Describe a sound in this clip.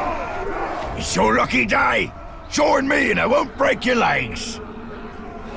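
A gruff orc voice growls a threat at close range.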